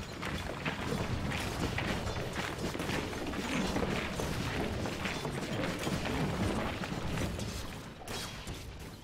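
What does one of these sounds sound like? Weapons clash and strike rapidly in a noisy battle.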